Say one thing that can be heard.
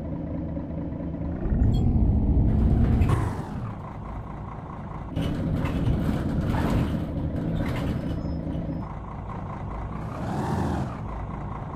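A bus engine hums steadily, rising and falling as it revs.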